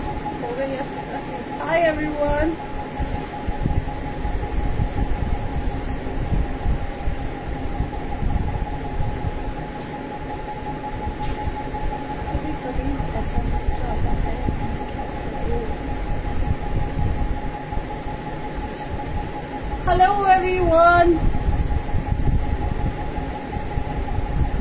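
A young woman talks animatedly, close to the microphone.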